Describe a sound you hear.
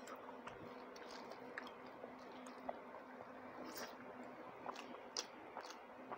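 A woman chews food wetly with her mouth close by.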